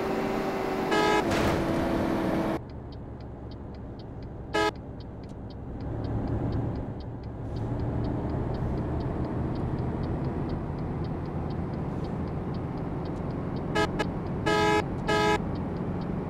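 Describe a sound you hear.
A bus horn honks in short blasts.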